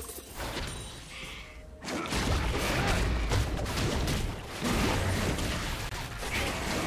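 Video game spell and attack effects crackle and boom in a fast fight.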